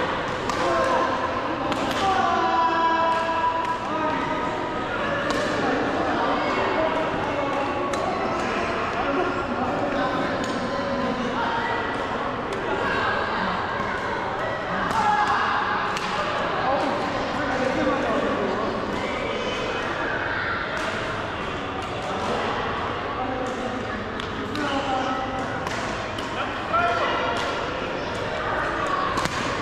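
Voices of men and women chatter and call out in a large echoing hall.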